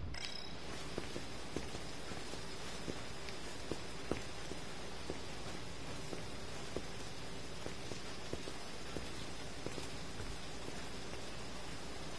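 Footsteps tap at an even pace on hard ground.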